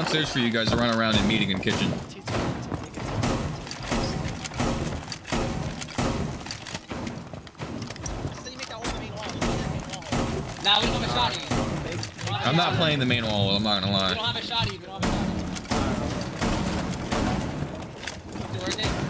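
Shotgun blasts boom one after another, close by.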